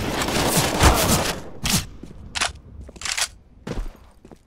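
Footsteps tap on hard ground.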